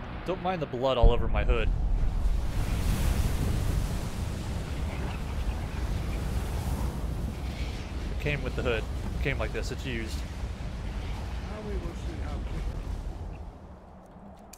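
A loud rushing wind roars and then dies away.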